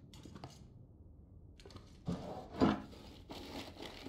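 Items rustle and clatter inside a plastic cooler.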